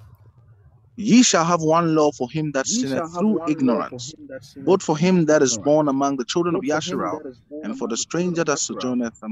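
Another man reads aloud steadily over an online call.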